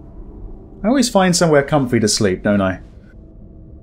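A man speaks with strain, close by.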